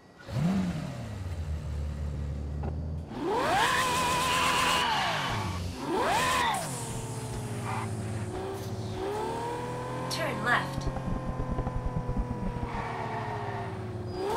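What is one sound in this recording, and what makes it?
Tyres screech on tarmac during a drift.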